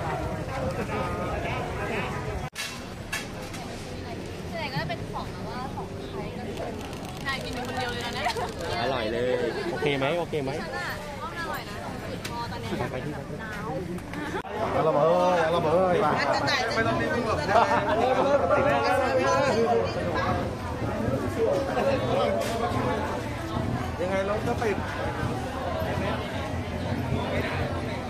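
A crowd chatters outdoors all around.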